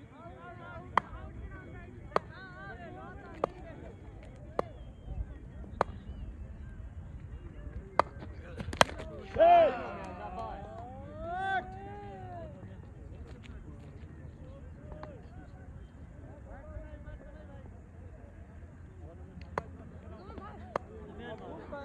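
A cricket bat taps sharply on hard ground, again and again.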